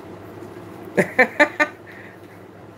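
A middle-aged woman laughs close by.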